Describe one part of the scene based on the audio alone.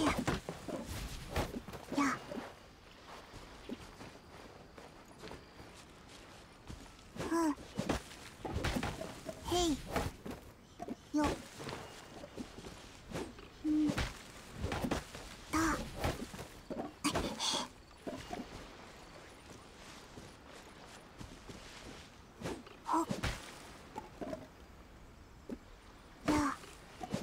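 A tree trunk thuds as it is struck.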